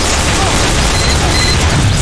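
Gunshots crack from a pistol.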